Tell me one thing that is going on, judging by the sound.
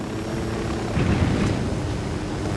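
A helicopter thuds down onto rough ground.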